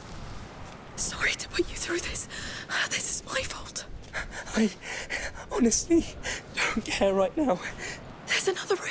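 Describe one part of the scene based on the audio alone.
A young woman speaks tensely and close.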